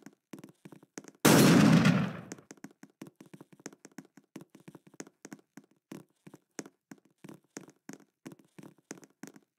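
Footsteps run quickly.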